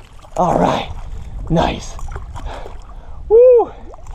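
Water splashes as a fish thrashes in a net.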